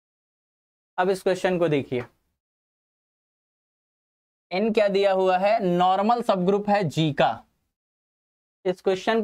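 A man lectures with animation through a microphone, in bursts with pauses.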